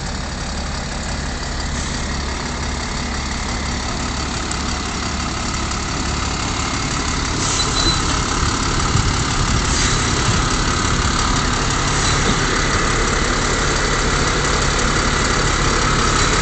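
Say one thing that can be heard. Truck tyres spin and churn in snow.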